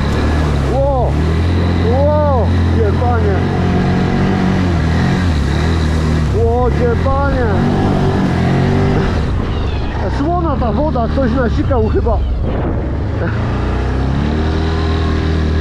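Water and mud splash loudly against the bike.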